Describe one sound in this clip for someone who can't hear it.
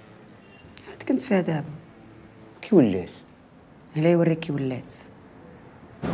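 A young woman speaks quietly and sadly up close.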